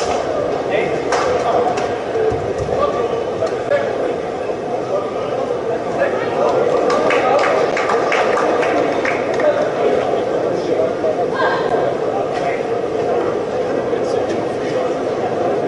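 A large crowd murmurs steadily in an echoing hall.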